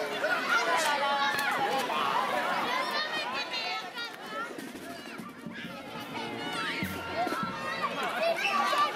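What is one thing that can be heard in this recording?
Children shriek and shout excitedly nearby.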